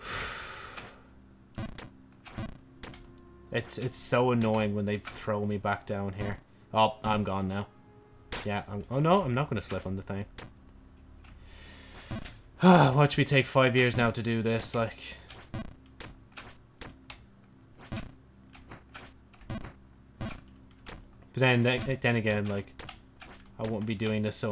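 Short game sound effects click and blip.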